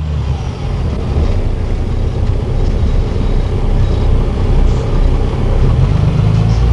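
A toy car engine rumbles.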